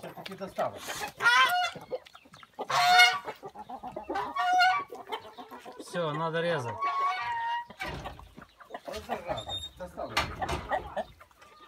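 Chickens cluck and squawk nearby.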